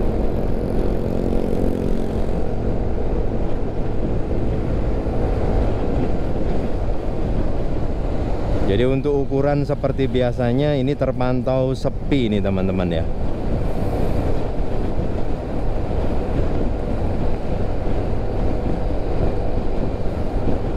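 Motorbike engines hum nearby on the road.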